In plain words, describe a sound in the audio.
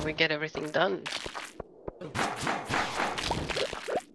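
A sword swings and strikes monsters with short sharp hits.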